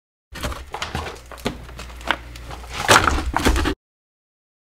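Frozen packs knock against each other.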